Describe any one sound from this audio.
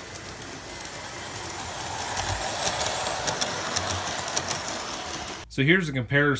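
A model train rattles along its track, growing louder as it passes close by.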